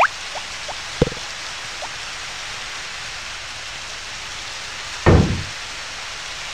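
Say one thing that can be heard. An axe chops heavily into a tree stump.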